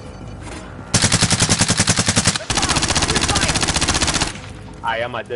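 Rapid gunfire rattles in quick bursts.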